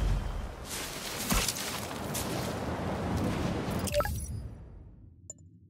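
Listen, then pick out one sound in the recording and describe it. Wind rushes loudly past during a fast swing through the air, then dies away.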